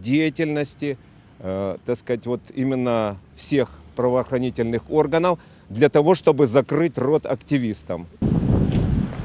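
A middle-aged man speaks calmly and firmly into microphones up close, outdoors.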